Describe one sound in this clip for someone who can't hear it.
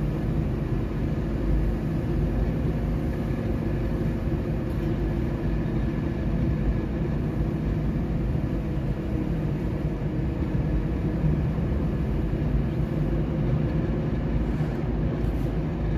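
Tyres roll steadily on the road with a low rumble.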